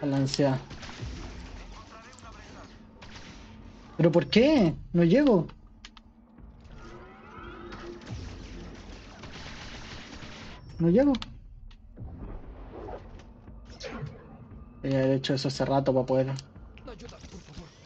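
A lightsaber hums and swishes.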